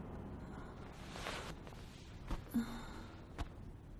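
Bedding rustles.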